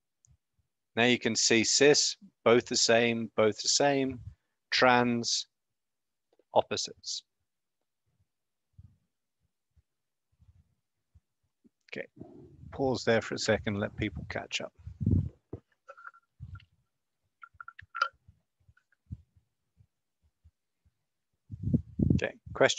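A man speaks calmly and close through an online call, in bursts with pauses.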